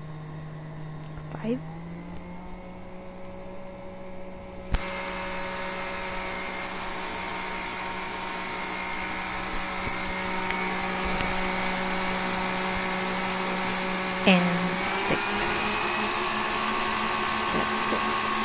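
An electric stand mixer hums steadily, growing louder and whining higher partway through.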